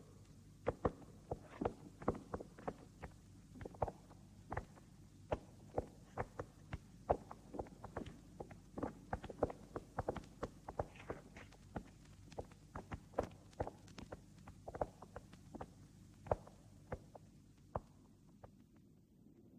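Footsteps knock slowly and unevenly on a hard floor.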